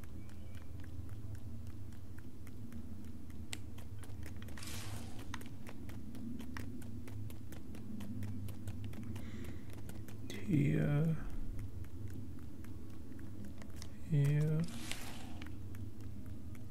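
Small footsteps patter steadily on soft ground.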